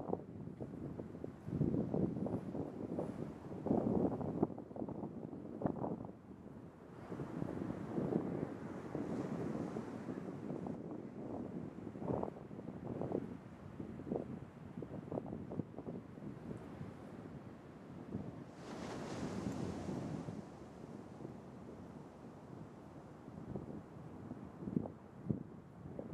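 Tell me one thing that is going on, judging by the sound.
A large seal breathes heavily and snorts nearby.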